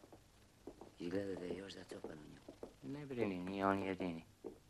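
A man speaks firmly, close by.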